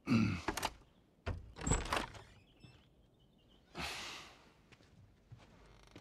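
A door handle clicks and a door creaks open.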